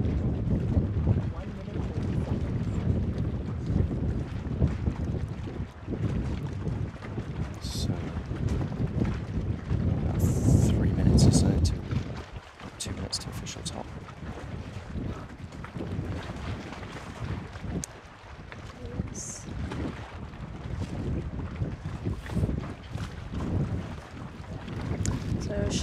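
Water laps gently.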